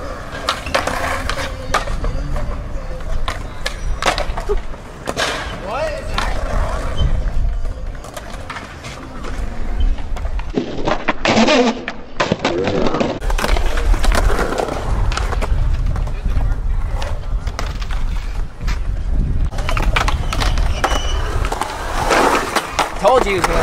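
A skateboard clacks and slaps against concrete and metal.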